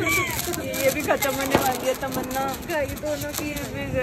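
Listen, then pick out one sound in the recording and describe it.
A sparkler fizzes and crackles.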